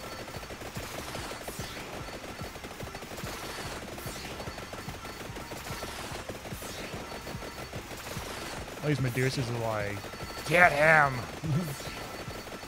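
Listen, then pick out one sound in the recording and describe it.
Rapid video game hit sounds crackle and patter without pause.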